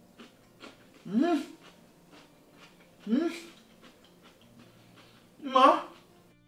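A man hums with pleasure while eating.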